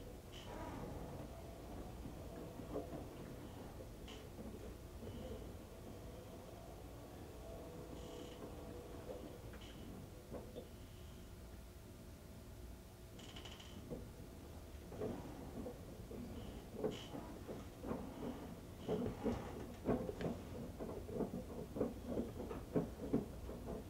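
Water sloshes and splashes inside a washing machine.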